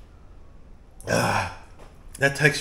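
A man lets out a loud breathy gasp after drinking.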